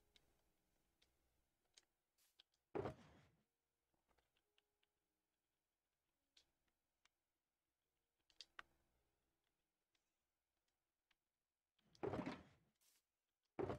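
Soft game menu clicks sound now and then.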